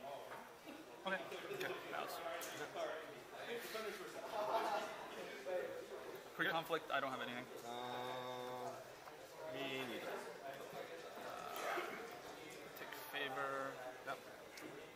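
Nearby adults talk quietly to each other.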